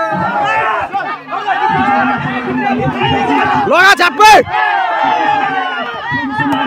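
A crowd of spectators chatters and calls out loudly outdoors.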